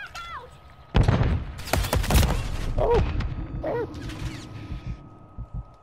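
Heavy blows land in a close-range struggle.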